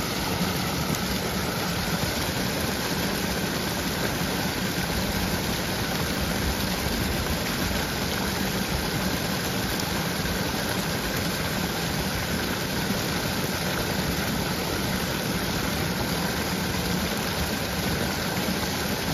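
Shallow water ripples and trickles steadily over stones.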